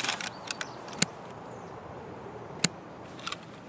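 A rifle's mechanism clicks sharply.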